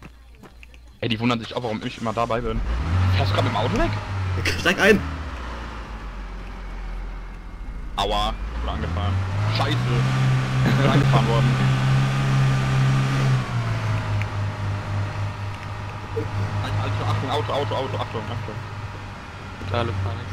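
A car engine hums and revs as the car drives along a road.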